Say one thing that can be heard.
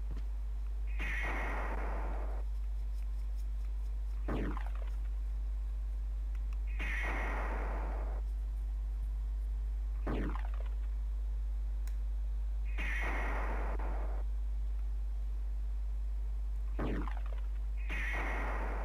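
A game sound effect rushes in a loud hissing burst, again and again.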